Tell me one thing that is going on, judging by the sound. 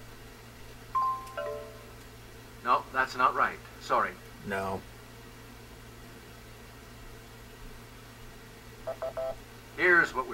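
Short electronic menu beeps sound from a game.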